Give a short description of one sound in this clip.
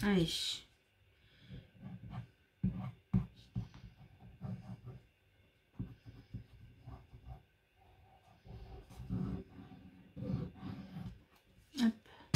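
A glue bottle's tip rubs and dabs against paper.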